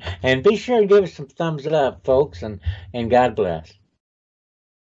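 An older man talks cheerfully over an online call.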